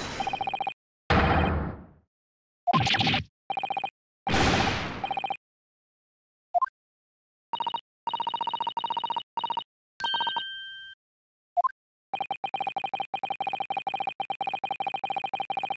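Short electronic blips chirp rapidly in quick bursts.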